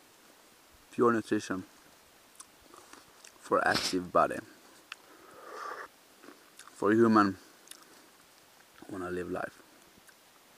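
A young man speaks in short bursts close to the microphone, outdoors.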